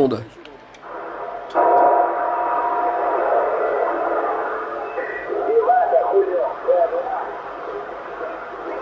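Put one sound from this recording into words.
Static hisses and crackles from a radio receiver.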